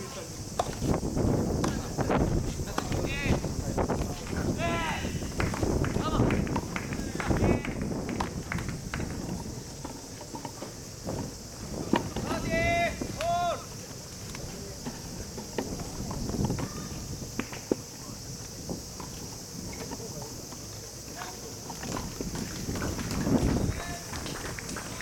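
Tennis balls are hit with rackets nearby, with sharp pops.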